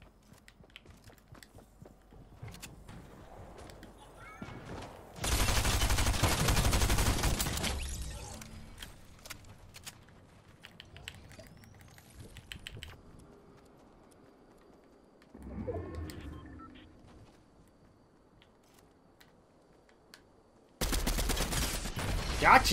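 Footsteps patter quickly on the ground.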